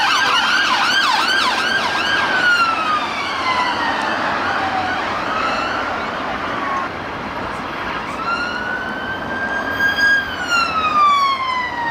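A police siren yelps rapidly, then wails and drops in pitch as it passes close by.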